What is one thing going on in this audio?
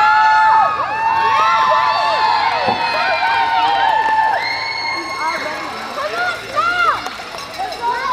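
A crowd of young girls cheers and screams loudly in a large echoing hall.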